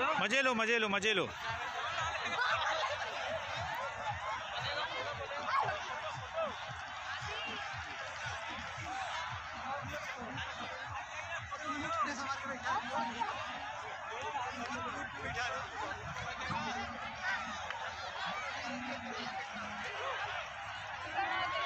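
A crowd chatters and calls out all around outdoors.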